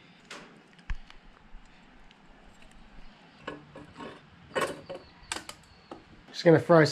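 Metal bolts click and scrape as they are threaded by hand.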